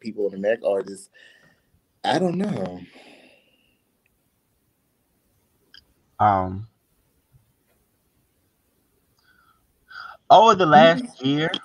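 A young man speaks with animation over an online call, in short bursts with pauses.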